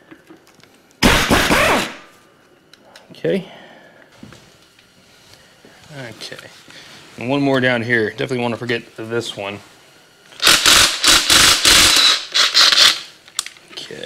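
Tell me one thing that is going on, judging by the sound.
A power tool whirs in short loud bursts.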